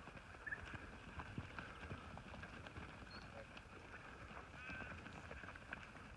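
A flock of sheep shuffles and trots over dry ground.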